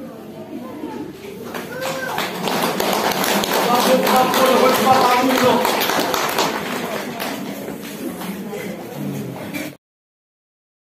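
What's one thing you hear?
A group of women and men sing together through a loudspeaker in a large echoing hall.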